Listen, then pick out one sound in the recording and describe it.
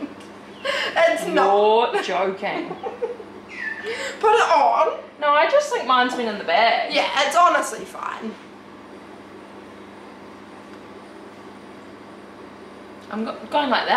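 Two young women talk and laugh with animation close by.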